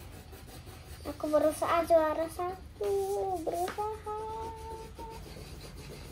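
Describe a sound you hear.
A young girl talks brightly close by.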